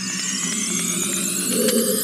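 A sword strikes a block of ice.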